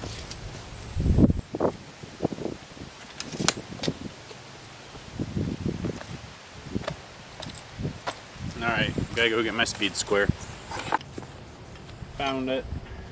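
A stapler clicks sharply against a wooden post.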